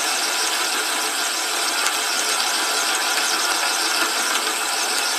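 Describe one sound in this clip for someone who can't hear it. A drill bit grinds steadily into metal.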